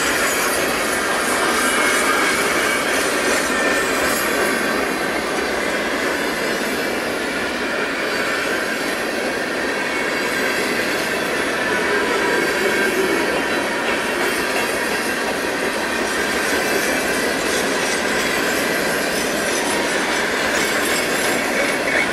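A long freight train rumbles steadily past, its wheels clattering on the rails.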